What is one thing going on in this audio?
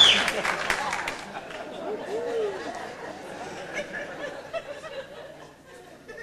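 An audience applauds and cheers in a hall.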